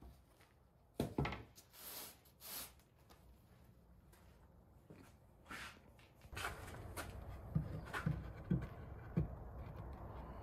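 Wooden boards knock and clatter as they are set in place.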